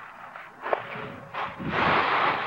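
A rake scrapes through dry leaves.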